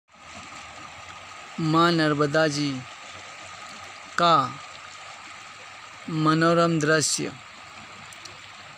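River water ripples and flows steadily over rocks outdoors.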